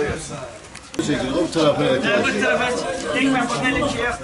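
Several men talk over one another in a crowd outdoors.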